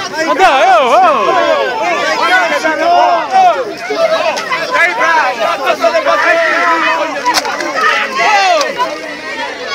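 A crowd of people chants and shouts loudly outdoors.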